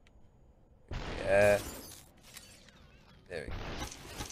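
A body shatters like glass.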